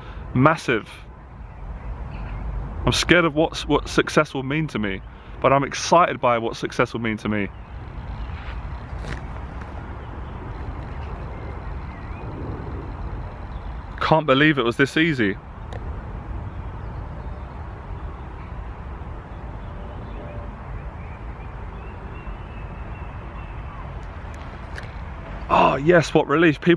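A young man speaks calmly, close by.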